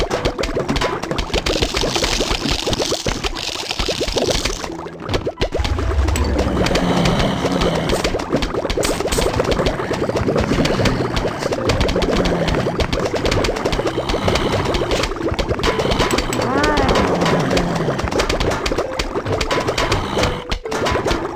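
Cartoonish plants rapidly pop and puff spores.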